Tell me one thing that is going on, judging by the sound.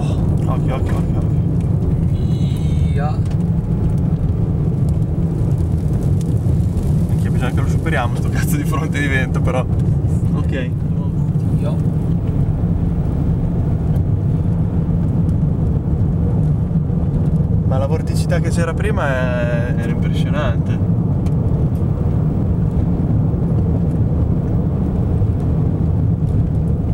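A car rumbles steadily along a road.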